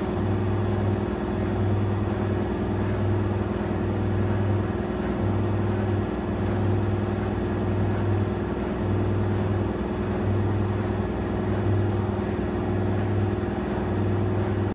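Laundry tumbles and swishes inside a washing machine drum.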